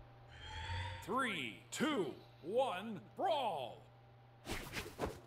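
A countdown sounds in quick bursts.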